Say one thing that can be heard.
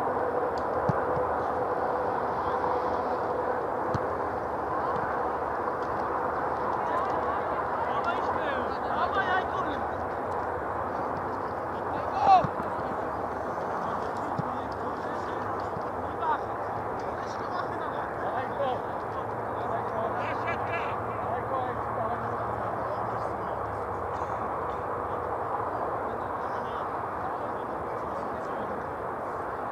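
Young men shout to each other across an open field, far off.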